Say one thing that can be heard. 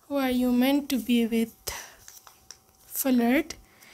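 A slip of paper crinkles as it is unfolded.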